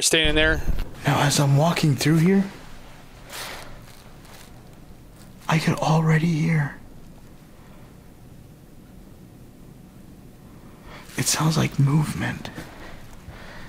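A man speaks with alarm, close and a little muffled, in short bursts.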